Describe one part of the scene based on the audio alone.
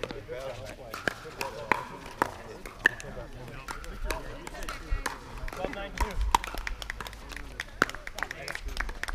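Paddles sharply hit a plastic ball back and forth outdoors.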